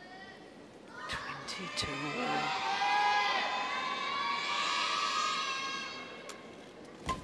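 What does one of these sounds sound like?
A large crowd cheers and claps in an echoing arena.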